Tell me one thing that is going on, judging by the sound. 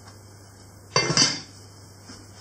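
A heavy metal lid clanks onto a pot.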